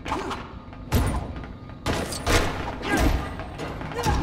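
A blaster fires with sharp bursts.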